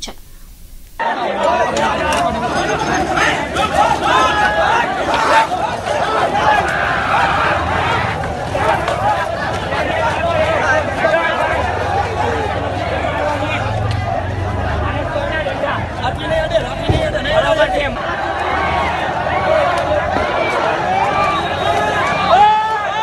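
A crowd of young men shouts and clamours outdoors.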